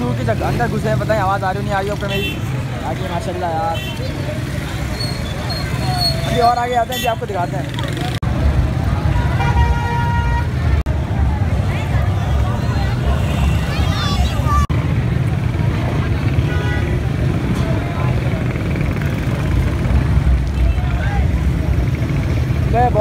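A large crowd chatters and murmurs all around outdoors.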